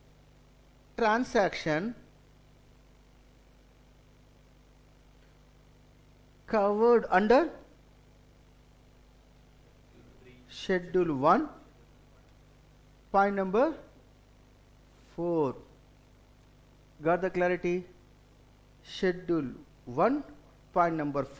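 A middle-aged man speaks calmly in short phrases with pauses, close to a microphone.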